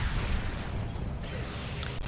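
An explosion bursts with a crash.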